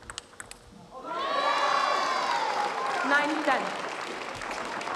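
A crowd claps and cheers in a large hall.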